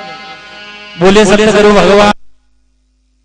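A group of men sings loudly through loudspeakers.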